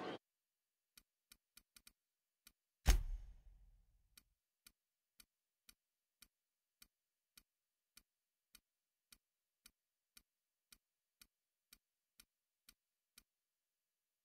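Soft menu clicks tick at a steady pace.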